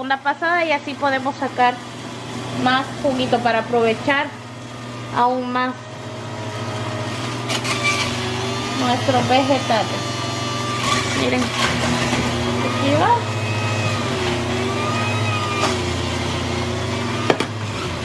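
A juicer motor hums steadily.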